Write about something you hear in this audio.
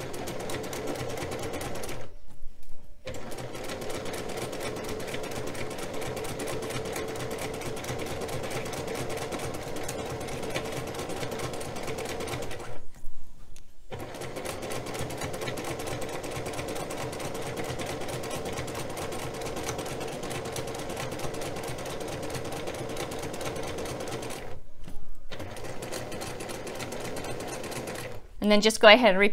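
A sewing machine hums and stitches steadily, pausing briefly now and then.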